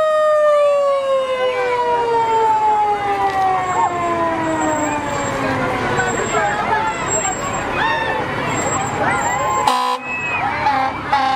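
A crowd of children and adults cheers and shouts outdoors.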